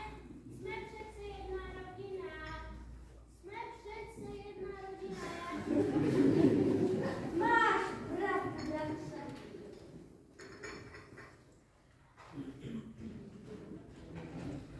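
Children speak lines aloud in a large echoing hall.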